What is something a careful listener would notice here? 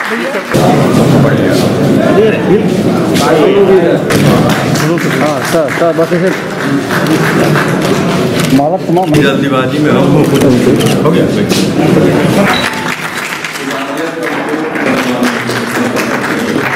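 A crowd of men chatter and talk over each other nearby.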